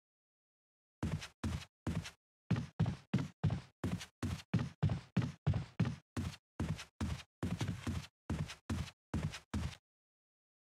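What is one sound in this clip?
Footsteps thud steadily on wooden stairs.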